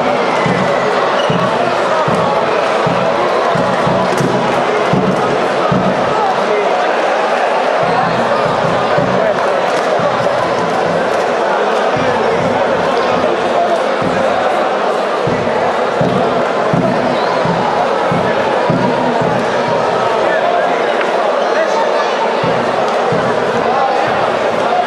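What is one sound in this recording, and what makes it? A large crowd chatters and cheers in a big echoing arena.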